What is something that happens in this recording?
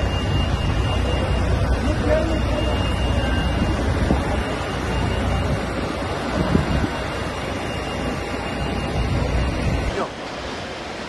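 Diesel fire engines idle outdoors.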